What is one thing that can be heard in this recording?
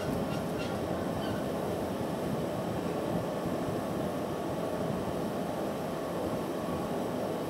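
A furnace roars steadily.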